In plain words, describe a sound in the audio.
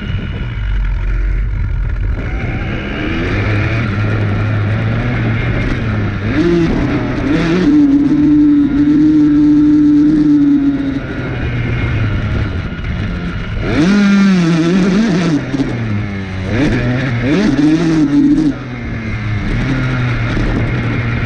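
A dirt bike engine drones close by, revving up and down.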